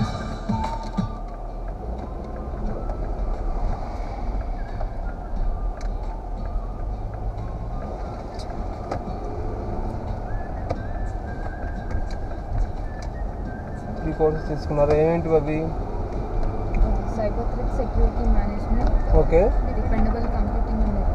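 A car engine hums steadily as it drives along a road.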